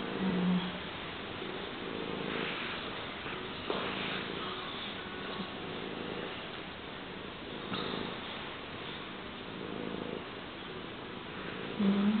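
A hand rubs softly over a cat's fur.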